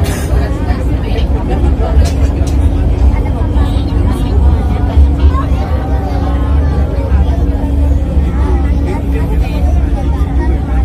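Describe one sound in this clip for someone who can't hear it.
A train's motor hums with a steady low drone.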